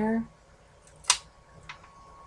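Tweezers tap a small tile down on a hard table.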